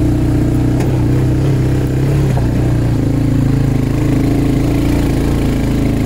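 An all-terrain vehicle engine rumbles steadily up close.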